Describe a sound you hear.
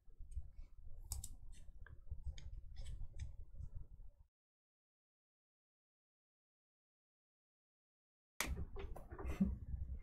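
Plastic card sleeves rustle and click in hands.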